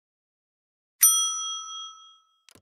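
A small bell chimes brightly and rings out.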